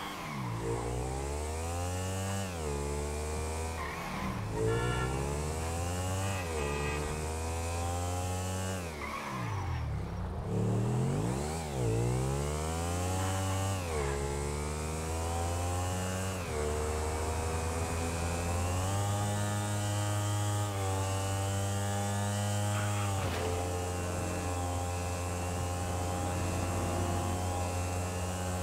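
A heavy truck engine roars, rising in pitch and dropping again as the gears shift.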